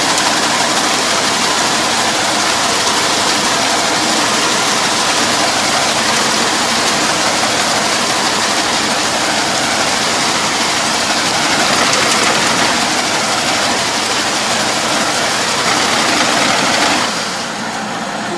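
A rotary tiller churns through wet mud with a loud, steady rushing noise.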